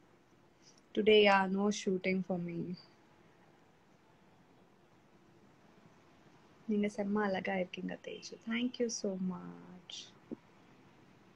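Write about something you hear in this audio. A young woman speaks calmly and close up, in short bursts with pauses.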